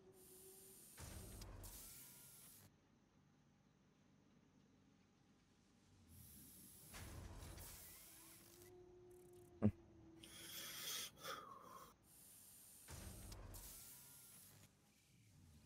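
A machine grinds and whirs in short repeated bursts.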